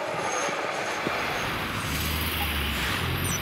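Car traffic hums steadily along a street.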